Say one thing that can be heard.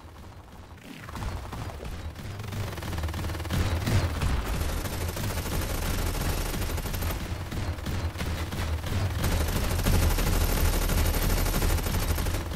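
A vehicle engine rumbles steadily as it drives across sand.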